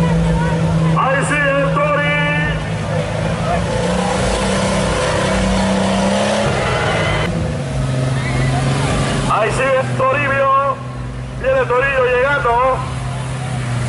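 A crowd of spectators shouts and cheers.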